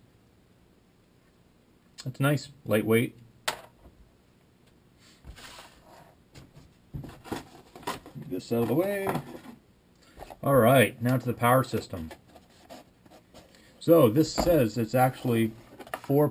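Small plastic parts click and rattle in a man's hands.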